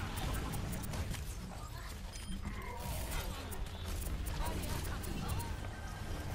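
Energy beams hum and zap in a video game.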